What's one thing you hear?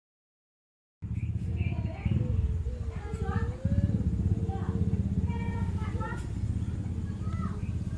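A man snores close by.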